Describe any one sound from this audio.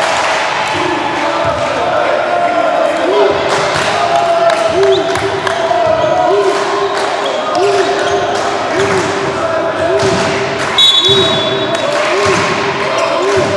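A crowd chants rhythmically in a large echoing hall.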